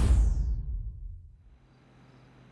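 A deep startup chime swells and fades away.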